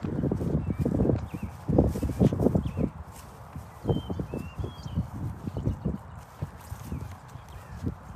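A dog rolls and wriggles on grass, rustling.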